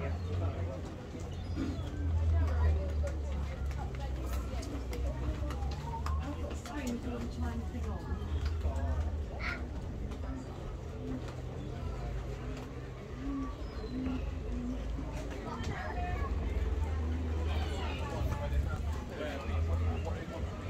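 People chatter nearby in a crowd.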